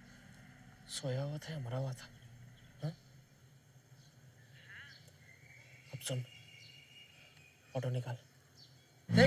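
A man speaks quietly into a phone in short bursts.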